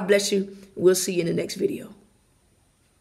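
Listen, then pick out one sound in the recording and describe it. A woman speaks close to the microphone in a warm, upbeat voice.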